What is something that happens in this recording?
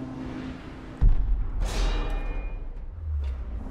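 An explosion booms with a loud rumble.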